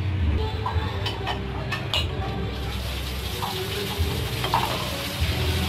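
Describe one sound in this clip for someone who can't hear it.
Glass mugs clink as they are set down on a hard floor.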